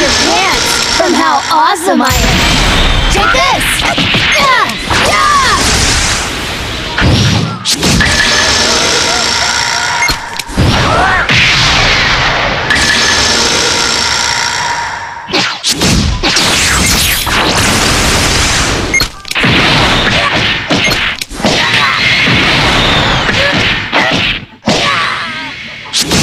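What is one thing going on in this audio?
Cartoon energy blasts whoosh and crackle loudly in a video game battle.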